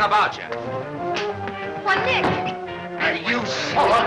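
A fist strikes a man in a brawl.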